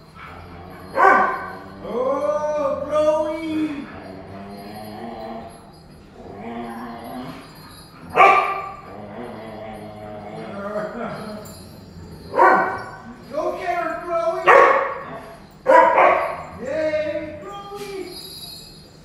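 Dogs whine and yelp excitedly.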